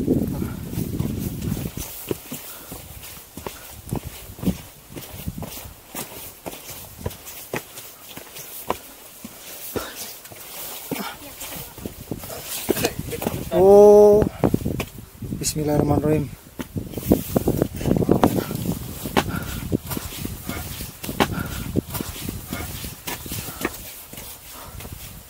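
Footsteps scuff and crunch on a rocky dirt path.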